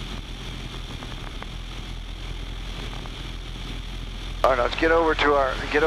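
A small plane's engine drones steadily.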